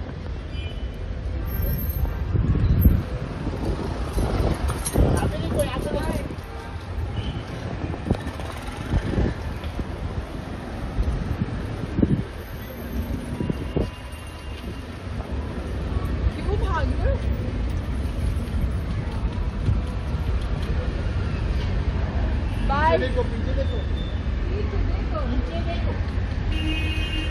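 Traffic rumbles steadily outdoors on a street.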